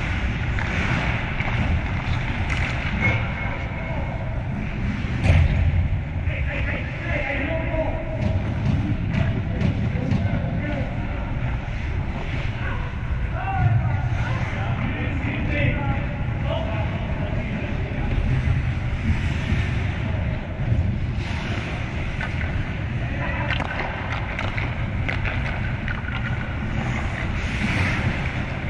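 Ice skates scrape and hiss on ice in a large echoing rink.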